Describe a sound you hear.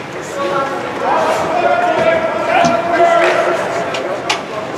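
Young male players shout and cheer.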